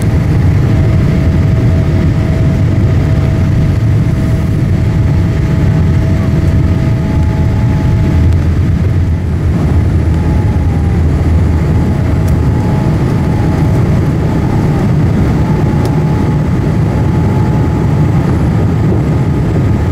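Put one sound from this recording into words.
A jet airliner's engines roar loudly from inside the cabin during takeoff.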